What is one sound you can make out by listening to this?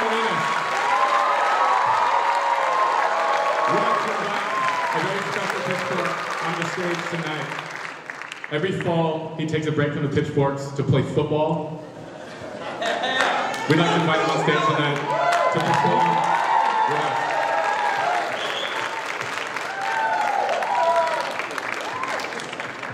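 A group of men sing together in harmony in a large echoing hall.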